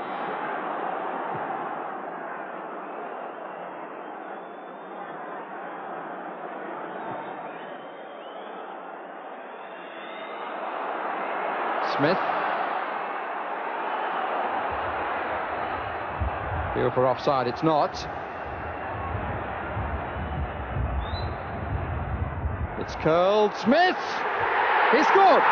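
A large stadium crowd roars steadily outdoors and swells loudly near the end.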